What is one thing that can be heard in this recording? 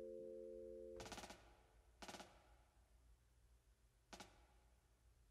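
Glass jars clink and rattle in short bursts.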